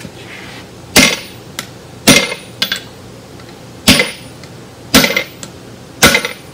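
A hammer strikes metal on an anvil with sharp ringing blows.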